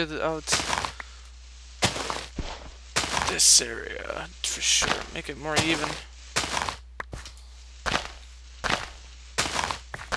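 A shovel digs into dirt in a video game with short crunching sounds.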